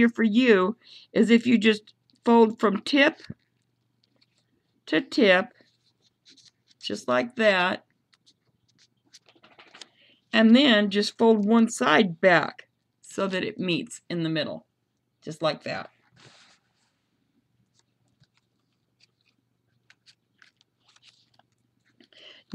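Paper crinkles softly as it is folded and creased.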